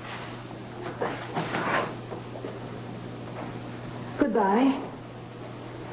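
An elderly woman speaks loudly and sharply.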